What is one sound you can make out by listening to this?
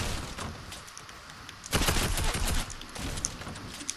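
Building panels snap into place with sharp clacks.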